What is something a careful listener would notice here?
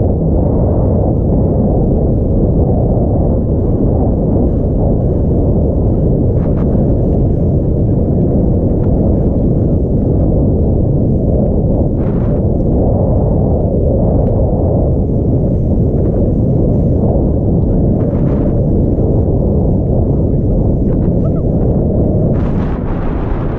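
Wind buffets the microphone with a steady loud rumble.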